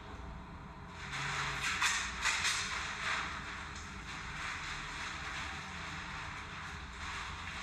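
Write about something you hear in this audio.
A plastic bag rustles and crinkles as it is handled.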